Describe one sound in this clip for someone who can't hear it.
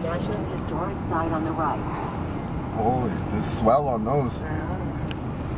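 A young man speaks casually nearby.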